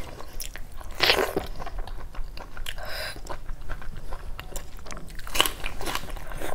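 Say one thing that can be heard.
A woman slurps and smacks her lips close up.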